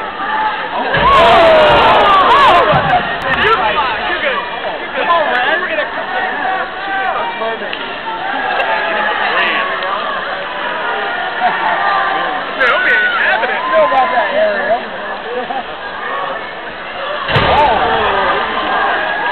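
A large arena crowd bursts into loud cheering and shouts.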